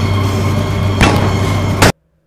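A handgun fires a loud shot.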